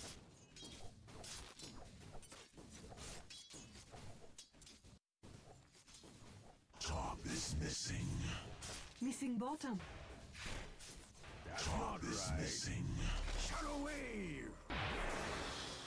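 Blades clash and strike in a fast fight.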